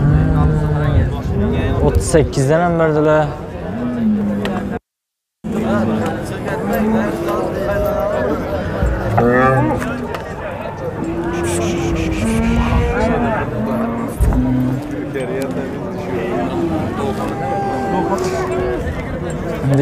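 Several men talk loudly nearby in an outdoor crowd.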